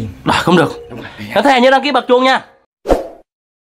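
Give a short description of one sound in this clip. A man speaks with animation close by.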